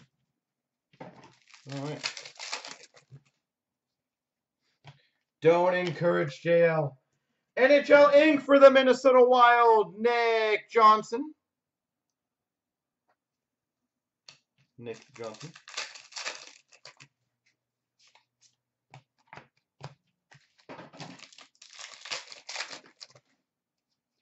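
Trading cards rustle and flick as hands sort through them.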